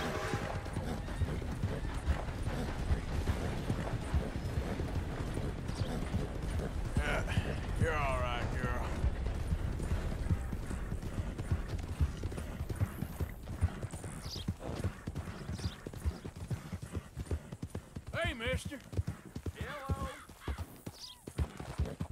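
Horse hooves pound steadily on grass and dirt at a gallop.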